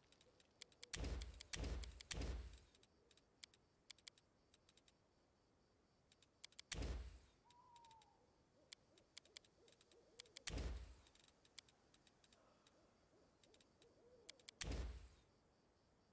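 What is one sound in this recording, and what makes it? Soft interface clicks and whooshing chimes sound as menu items are selected.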